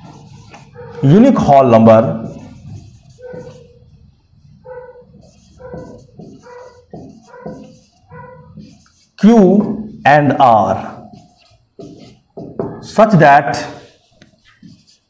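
A man speaks calmly, like a teacher explaining.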